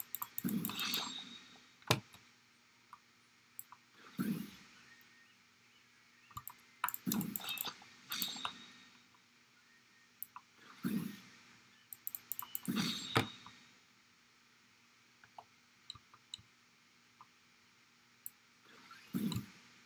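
Sword blades swish and slash in quick bursts.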